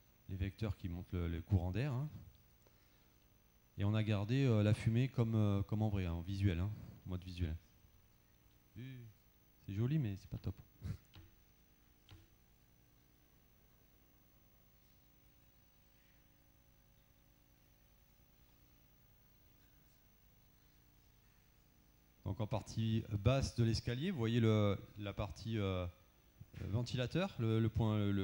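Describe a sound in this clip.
A man speaks calmly into a microphone, heard over loudspeakers in a large hall, with long pauses.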